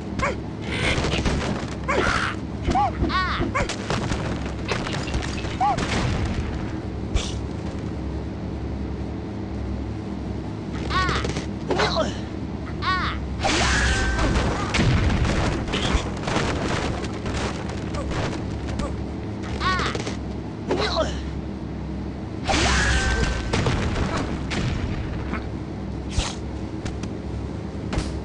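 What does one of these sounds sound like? Cartoon blocks crash and clatter in a video game.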